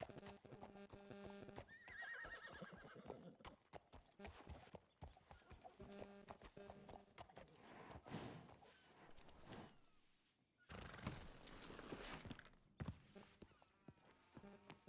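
Horse hooves clop on a hard floor.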